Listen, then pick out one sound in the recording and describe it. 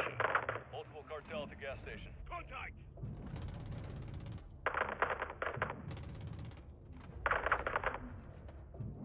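Heavy gunfire rattles in short rapid bursts.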